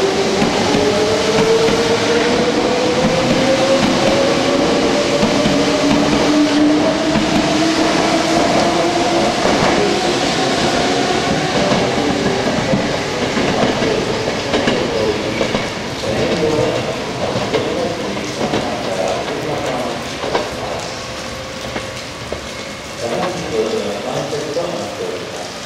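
Train wheels rumble and clatter along the rails, fading as the train moves off.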